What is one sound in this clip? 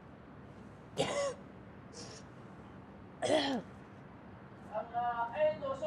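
A woman sobs and gasps for breath.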